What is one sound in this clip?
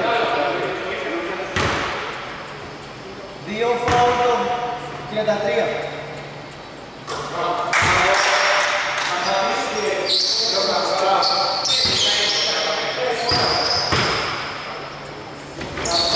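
Young men call out to each other across the hall.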